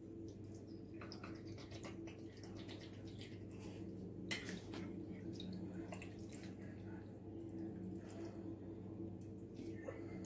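A metal spoon scrapes and clinks against a glass jar.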